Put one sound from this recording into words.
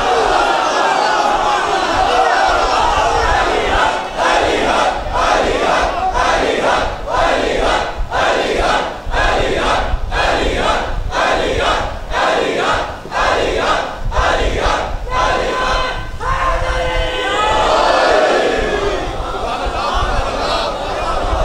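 A man recites passionately into a microphone, his voice amplified and echoing in a large hall.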